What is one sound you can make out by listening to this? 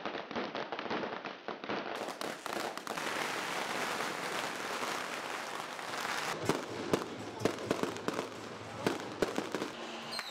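Firecrackers crackle and pop in rapid bursts.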